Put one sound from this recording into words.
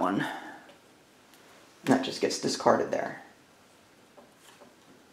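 Playing cards are laid down on a table with soft taps.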